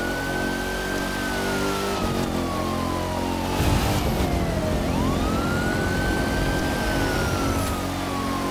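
A car engine roars as the car speeds up on a road.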